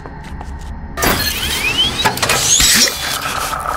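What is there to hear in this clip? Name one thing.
A machine whirs and chirps electronically.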